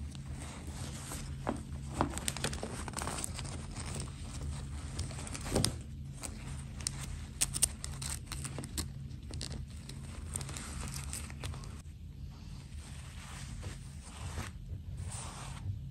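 Fingers rustle and rub soft fabric close by.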